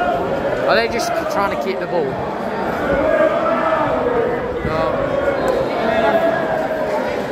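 A large crowd of fans chants and sings loudly in an open stadium.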